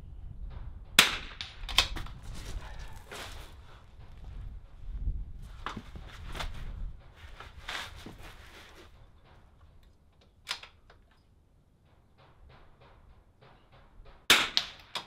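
A rifle fires loud sharp shots under a roof outdoors.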